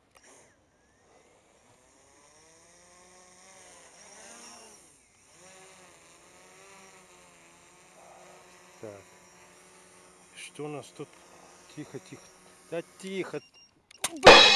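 A drone's propellers whir steadily, rising and falling in pitch as it flies.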